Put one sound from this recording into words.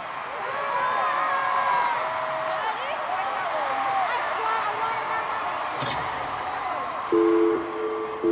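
Music plays loudly through arena loudspeakers.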